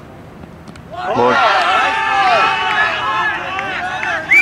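Several men shout and cheer loudly outdoors.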